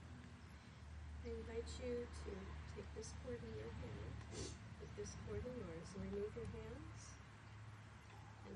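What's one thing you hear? A woman speaks calmly into a microphone outdoors.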